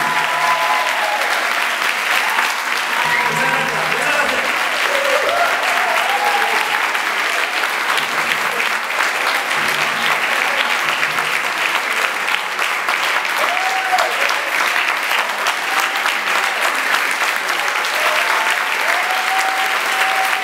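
A group of men and women sing together in a large hall.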